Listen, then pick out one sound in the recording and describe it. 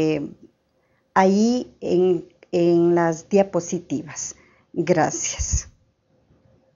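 A middle-aged woman speaks calmly into a close microphone.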